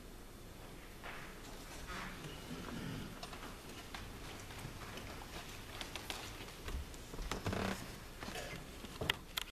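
A man speaks at a distance in a large echoing room.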